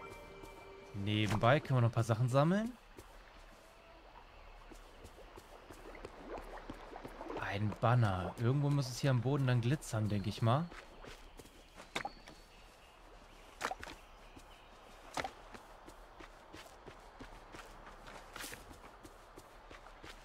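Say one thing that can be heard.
Footsteps patter on the ground.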